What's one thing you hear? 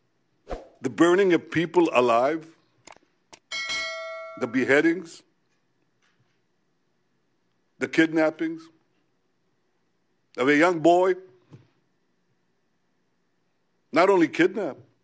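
An elderly man speaks slowly and deliberately into a microphone, with long pauses.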